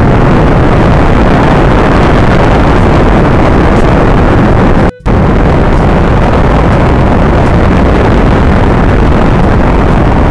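Rocket engines roar loudly and steadily, with a brief break in the middle.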